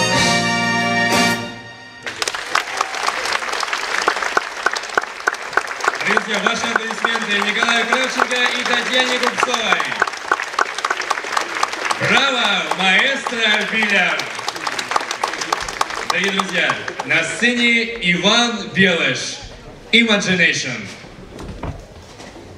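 A big band plays lively jazz with brass and saxophones in a large hall.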